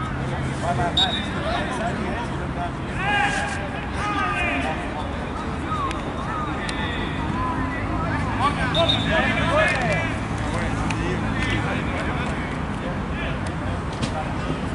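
Young men call out to each other during a football match outdoors.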